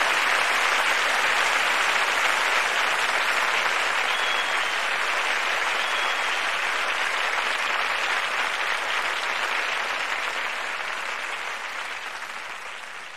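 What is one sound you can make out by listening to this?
A large outdoor crowd applauds and cheers loudly, then slowly quiets down.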